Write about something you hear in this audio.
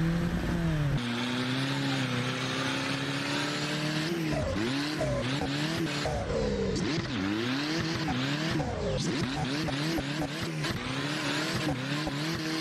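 Tyres screech and squeal as a car slides sideways.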